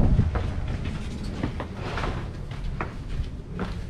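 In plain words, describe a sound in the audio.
Footsteps scuff down stone stairs.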